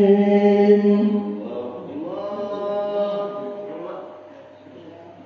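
A man chants through a loudspeaker in a large echoing hall.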